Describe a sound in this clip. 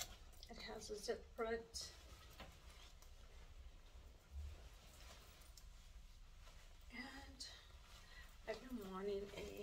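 Fabric rustles as a woman puts on a vest.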